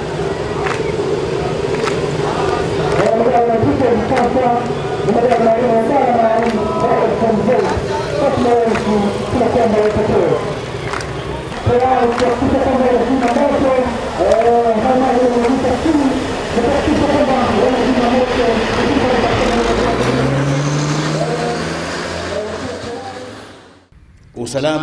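A crowd sings outdoors.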